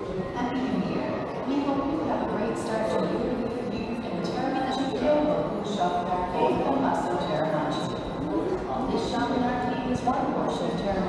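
A crowd of people chatters in a large echoing covered arcade.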